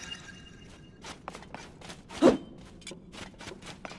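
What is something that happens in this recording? Footsteps patter quickly on a stone floor.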